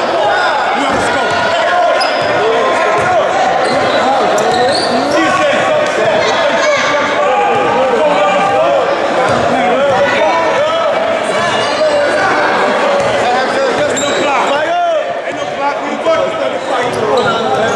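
A crowd of people chatters throughout a large echoing gym.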